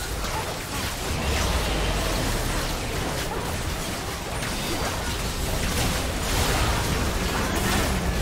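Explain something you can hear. Magic blasts and clashing weapons crackle and boom in a busy battle.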